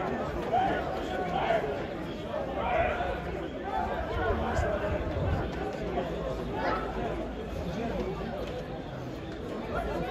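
A crowd of fans chants and shouts from stadium stands outdoors.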